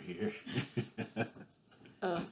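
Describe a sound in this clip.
A young woman laughs brightly nearby.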